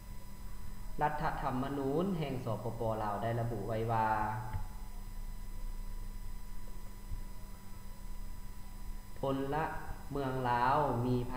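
A young man reads out calmly, close to a microphone, with pauses.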